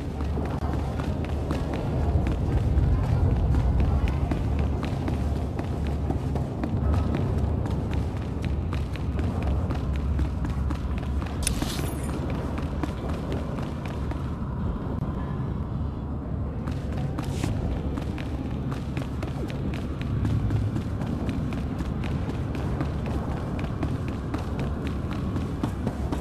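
Quick footsteps run across a hard metal floor.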